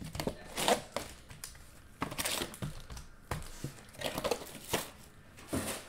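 Plastic wrapping crinkles and rustles in handling.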